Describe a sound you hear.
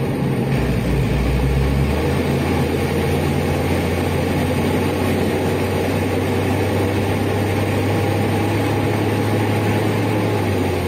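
An inline six-cylinder diesel city bus engine drones under way, heard from inside the bus, its low hum shifting in pitch.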